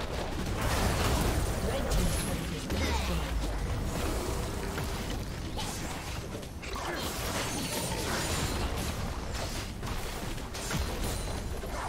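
Game spells blast and crackle over and over in a hectic fight.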